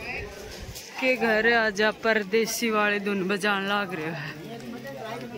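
A woman talks loudly and animatedly close by.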